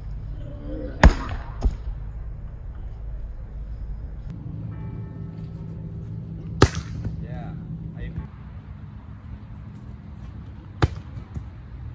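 A hand spikes a volleyball with a sharp slap outdoors.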